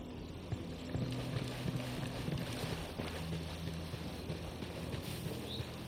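Footsteps tread over grass and dirt.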